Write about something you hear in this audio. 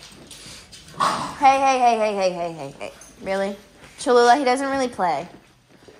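A dog whines and howls in long, rising and falling cries.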